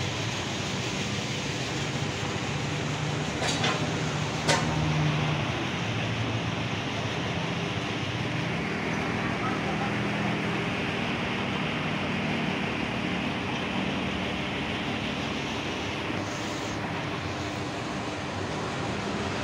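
Traffic hums steadily along a nearby road outdoors.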